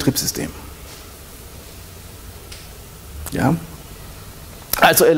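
A middle-aged man speaks through a microphone in a large room, with pauses.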